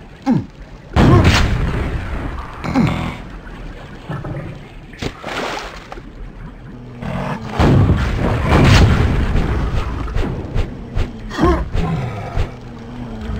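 Guns fire in loud bursts with echoing blasts.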